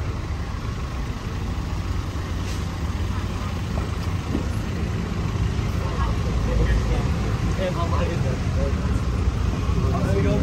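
Traffic rumbles steadily along a busy street.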